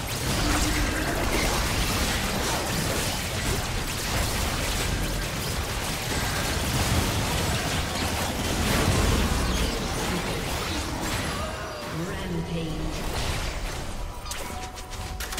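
Game spell blasts and combat effects crackle and boom in a fast battle.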